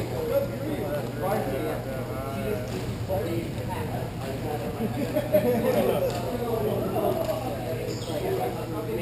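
Hockey sticks clack against a ball.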